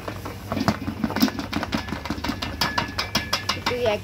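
Flour pours into a metal bowl.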